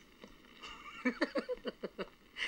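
Two men laugh heartily, close by.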